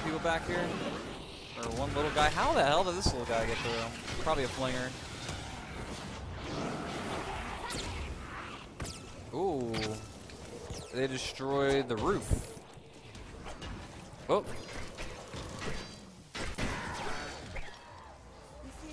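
Game sound effects of hits and building clatter play.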